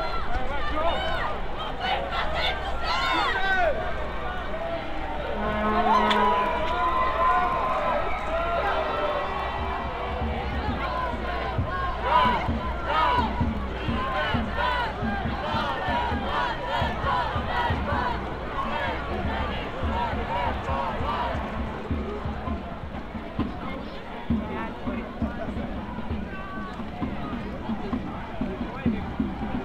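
A large crowd of voices chants and shouts outdoors, close by.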